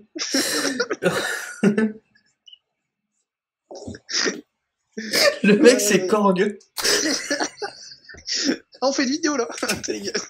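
A young man talks and laughs over an online call.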